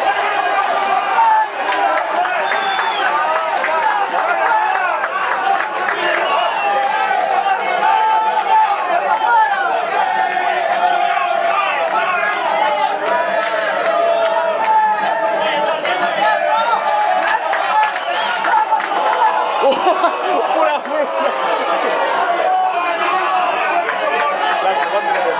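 Men talk and call out to each other outdoors, some way off.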